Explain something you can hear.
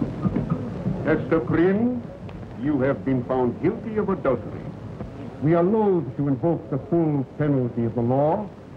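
An elderly man speaks loudly and sternly.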